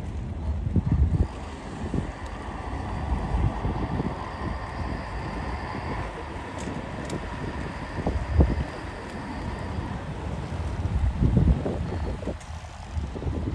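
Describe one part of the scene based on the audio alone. Water laps gently against boat hulls.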